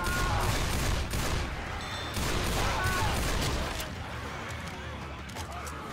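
A pistol fires single shots.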